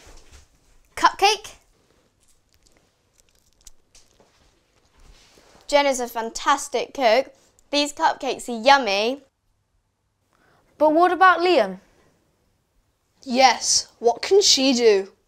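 A young girl speaks clearly in short lines, as if reading out, close to a microphone.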